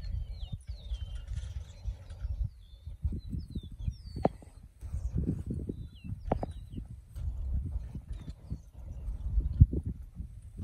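Hooves thud softly on loose soil as two draught animals walk closer.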